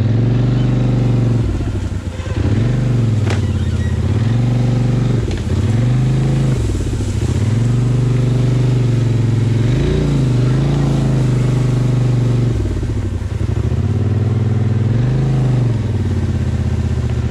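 An all-terrain vehicle engine rumbles close by, revving up and down.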